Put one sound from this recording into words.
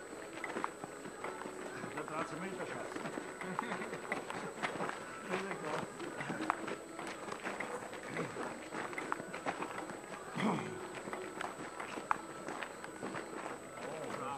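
Feet scuff and crunch on gravel.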